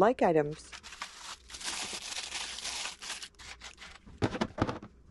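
A plastic tub rustles and crinkles as it is handled.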